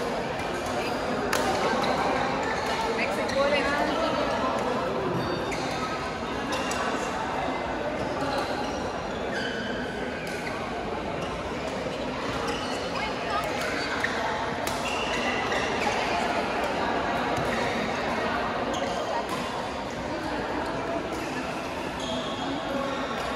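Shuttlecocks are struck with sharp pops from rackets throughout a large echoing hall.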